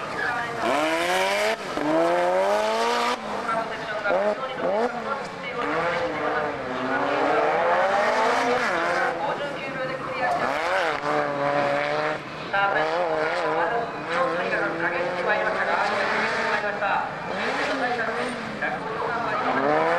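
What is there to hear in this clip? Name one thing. A car engine revs hard, rising and falling in pitch as the car slides through turns.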